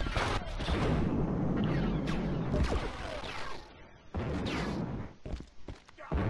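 A jet thruster hisses and roars.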